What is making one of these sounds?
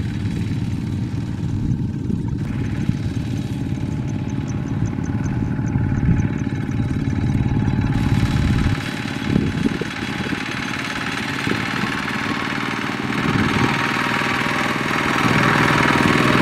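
A small diesel engine chugs loudly close by.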